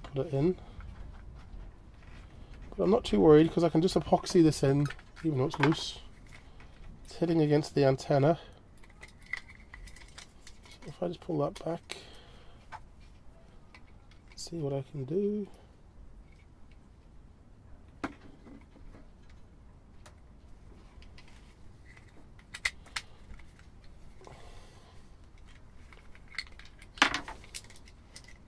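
Small plastic parts click and rattle in handling, close by.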